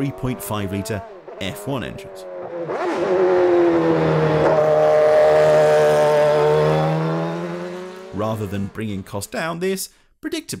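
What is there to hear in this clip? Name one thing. A race car engine roars loudly, revving up and down as the car speeds past.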